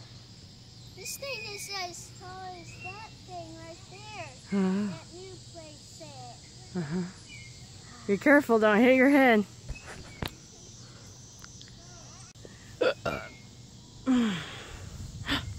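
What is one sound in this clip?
A young boy talks and squeals excitedly nearby, outdoors.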